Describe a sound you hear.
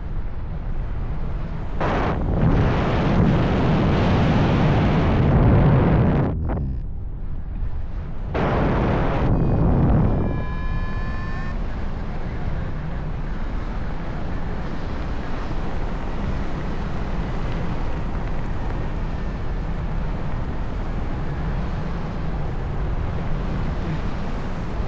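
Wind rushes and buffets loudly outdoors.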